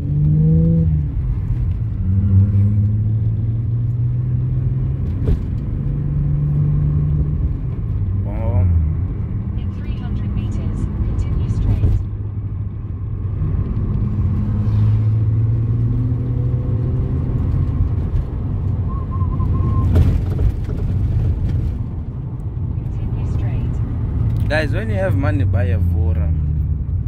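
Tyres roll on a road surface.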